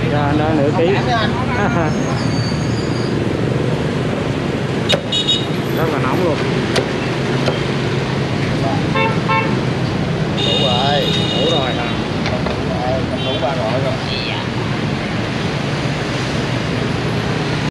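Motorbikes hum past on a busy street.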